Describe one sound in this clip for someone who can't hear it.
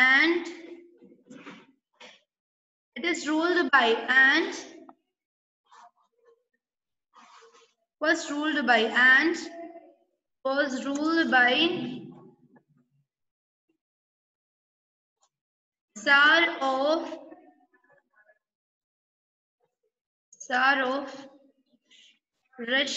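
A woman speaks slowly and clearly through an online call, pausing between phrases.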